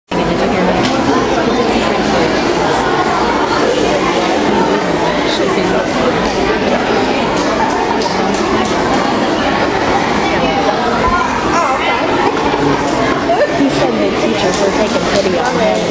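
A crowd of children chatters in a large echoing hall.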